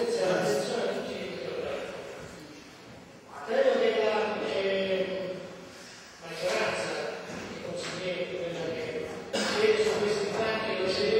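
A man speaks steadily into a microphone in an echoing hall.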